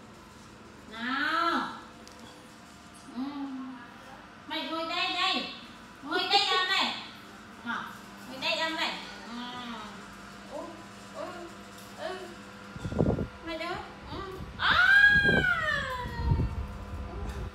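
A baby monkey squeals and cries in high, wavering calls.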